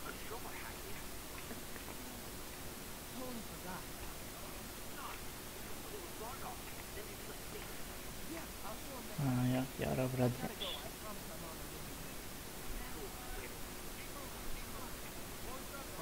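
A young man answers over a phone line with animation.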